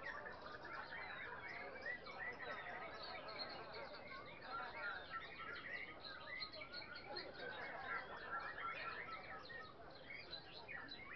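A large crowd of people chatters and calls out nearby outdoors.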